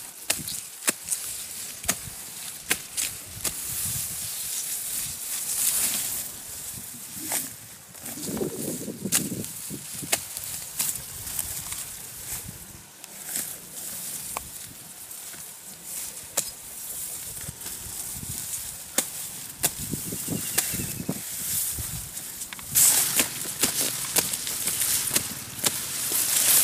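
Grass stems snap sharply as they are cut.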